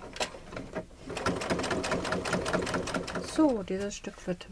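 A sewing machine runs in a fast, steady stitching rhythm.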